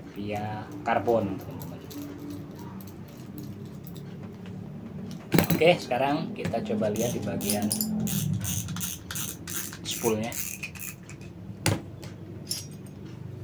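A fishing reel clicks and whirs as its handle is turned.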